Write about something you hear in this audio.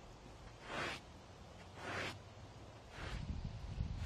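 A disc golf player throws a disc with a quick whoosh.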